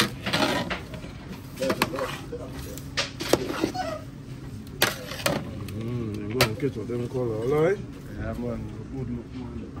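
A metal ladle scrapes and clinks against a large pot.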